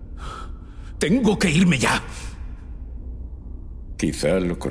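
A man speaks tensely and quietly, close by.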